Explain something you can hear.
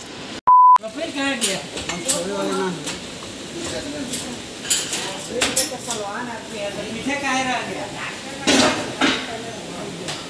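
Men call out to each other nearby.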